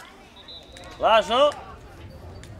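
A young player gives a loud, sharp shout close by.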